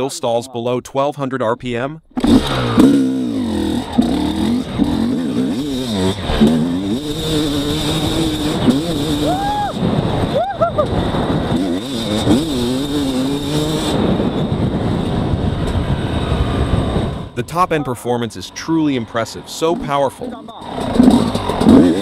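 A two-stroke dirt bike engine revs and accelerates hard.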